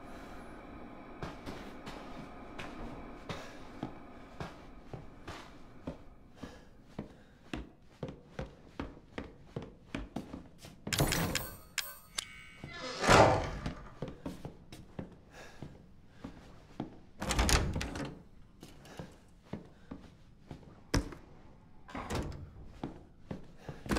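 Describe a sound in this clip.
Footsteps creak and thud on wooden floorboards.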